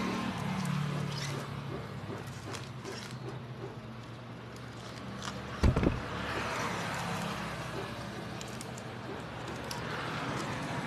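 A stiff brush scrubs against metal in quick, repeated strokes.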